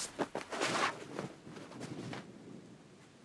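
Fabric rustles as a towel is handled.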